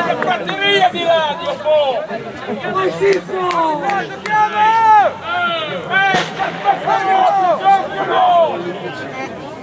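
Men shout loudly from the sidelines outdoors.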